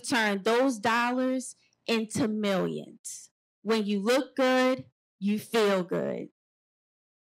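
A young woman speaks forcefully into a microphone, heard through loudspeakers.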